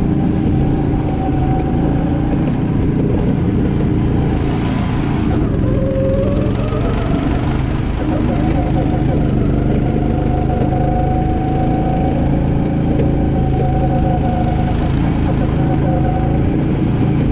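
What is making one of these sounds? A go-kart engine drones loudly up close, its pitch rising and falling with the speed.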